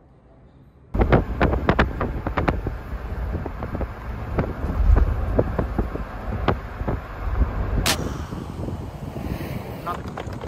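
A car drives along a road with a rumble of tyres.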